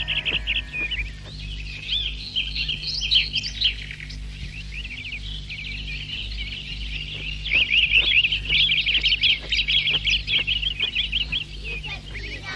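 Birds chirp and twitter steadily.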